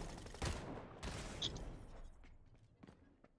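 Rapid gunfire rattles from a video game through a television speaker.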